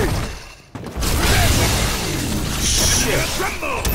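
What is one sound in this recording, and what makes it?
A video game energy blast roars and crackles.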